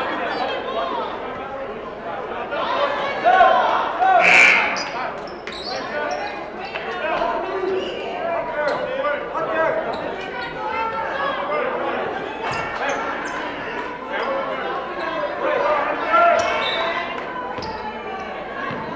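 A crowd chatters and cheers in a large echoing gym.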